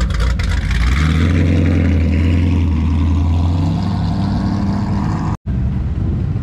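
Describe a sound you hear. A V8 sedan revs and pulls away.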